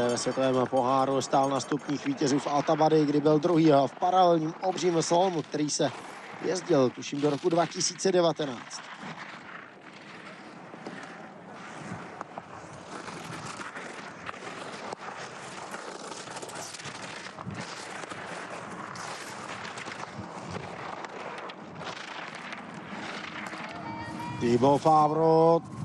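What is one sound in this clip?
Skis scrape and hiss over hard, icy snow.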